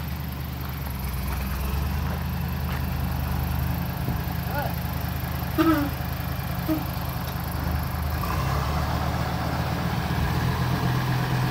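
A truck's diesel engine revs louder as the truck backs up.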